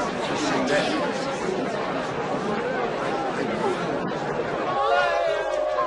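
A crowd of men murmurs and talks all at once.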